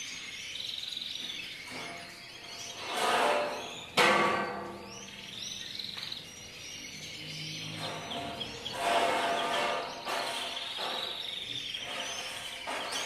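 Many small birds chirp and twitter throughout.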